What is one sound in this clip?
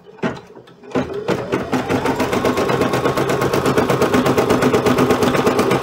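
A sewing machine starts up and stitches with a fast, steady rattling hum.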